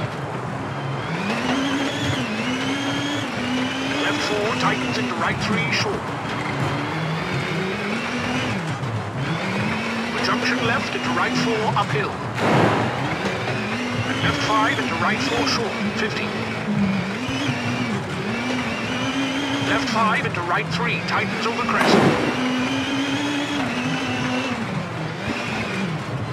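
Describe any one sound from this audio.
A rally car engine revs up and down as gears change.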